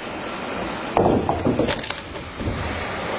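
A wooden log cracks and splits apart.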